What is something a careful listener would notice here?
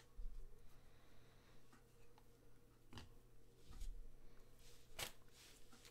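Trading cards slide and flick against each other in hands.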